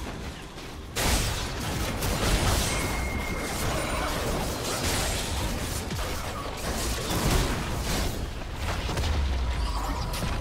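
Spell blasts and weapon hits crash and crackle in a fast game fight.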